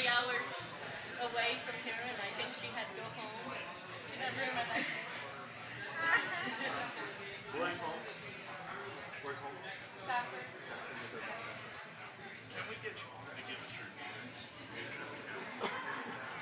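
A middle-aged woman speaks warmly into a microphone, close by.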